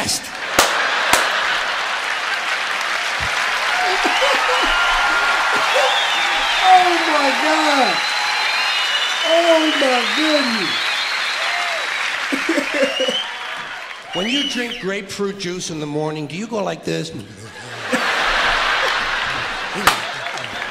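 A crowd laughs, heard through a speaker.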